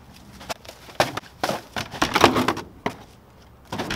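Garbage bags thud into a metal dumpster.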